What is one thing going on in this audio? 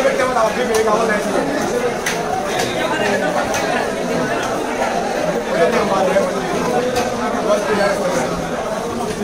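A knife scrapes and taps against the scales of a large fish.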